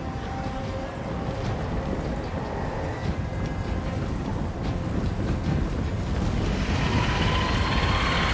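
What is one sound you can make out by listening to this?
A huge army marches with a deep, rumbling tramp of many feet.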